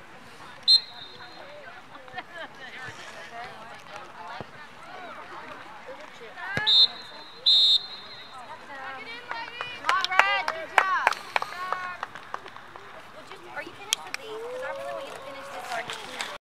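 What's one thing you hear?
Girls and adults shout and cheer outdoors at a distance.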